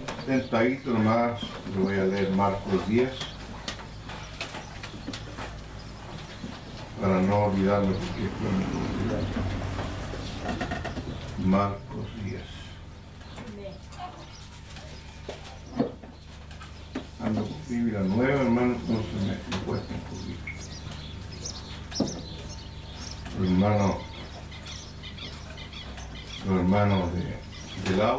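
An elderly man reads aloud calmly into a microphone, in bursts with pauses.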